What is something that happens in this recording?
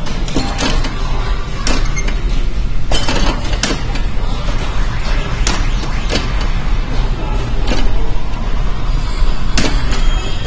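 A pinball ball rolls and knocks against bumpers.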